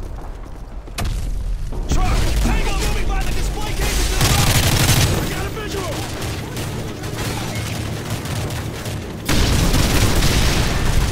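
Gunfire rattles in rapid bursts nearby.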